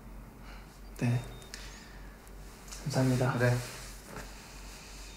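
A young man speaks quietly.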